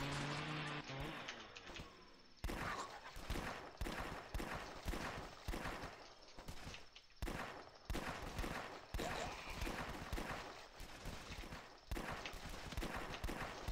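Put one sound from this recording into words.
Gunshots fire in quick, repeated bursts.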